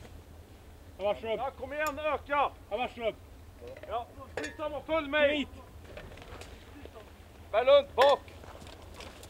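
Men shout short commands outdoors.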